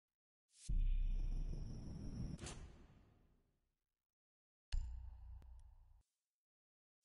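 A deep whoosh and rumble sound as a game menu option is confirmed.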